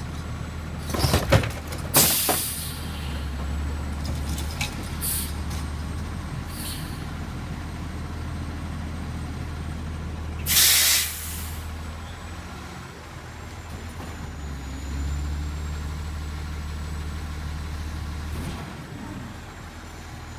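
A garbage truck engine idles with a low, steady rumble.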